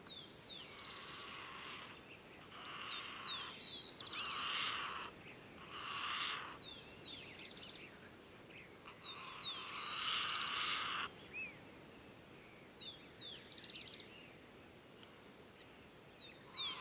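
Large wading birds call with loud, harsh, metallic honks in repeated bursts.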